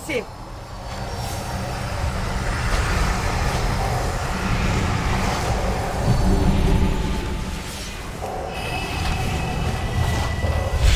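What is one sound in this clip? Magic spells crackle and whoosh in a game battle.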